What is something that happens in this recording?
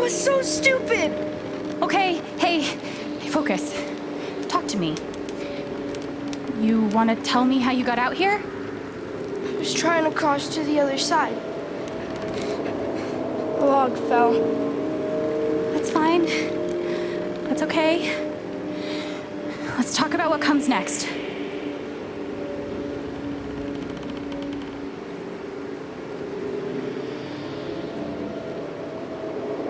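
Soft, steady music plays in the background.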